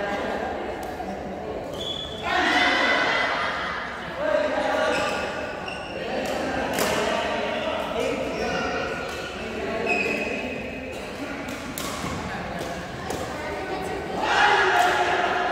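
Young men and women talk and call out across the hall.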